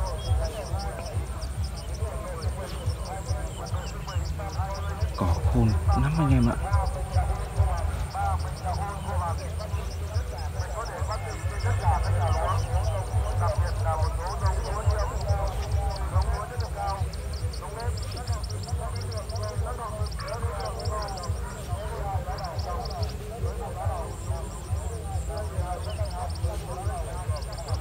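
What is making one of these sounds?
Many birds chirp and twitter outdoors.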